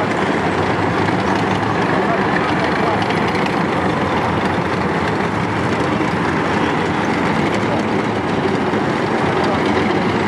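Steel tracks clatter on asphalt.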